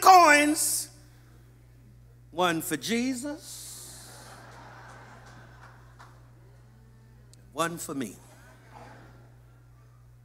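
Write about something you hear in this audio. A man speaks with emphasis into a microphone, in bursts with long pauses, in a large echoing hall.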